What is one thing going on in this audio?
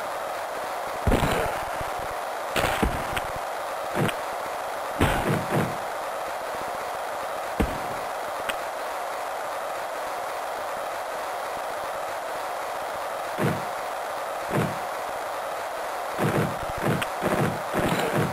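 A crowd roars steadily in an arena.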